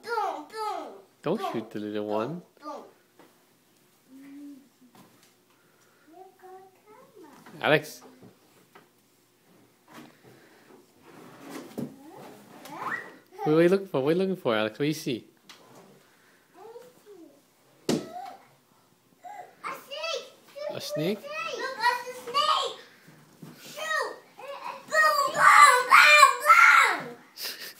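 Young children talk and squeal playfully close by.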